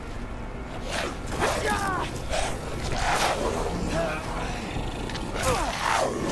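A creature snarls and shrieks up close.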